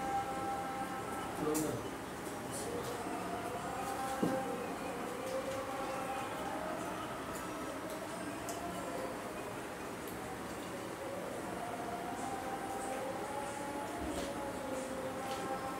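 Cutlery and hands clink softly against plates.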